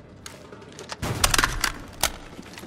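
Metal gear clanks as a rifle is lowered.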